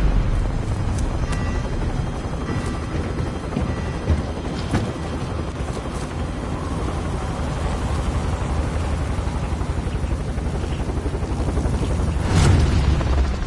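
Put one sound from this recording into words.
Wind roars loudly through an open aircraft door.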